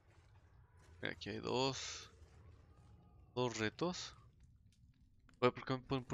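A young man talks with animation, close to a microphone, in short bursts.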